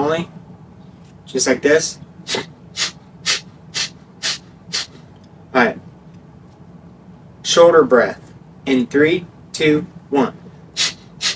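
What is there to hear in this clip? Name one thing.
A young man speaks calmly, close by.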